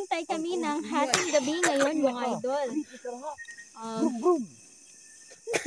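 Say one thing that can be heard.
A young woman sobs and wails loudly close by.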